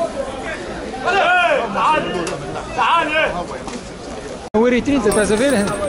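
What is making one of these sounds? A man calls out loudly to passers-by.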